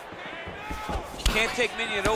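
A kick lands with a dull thud.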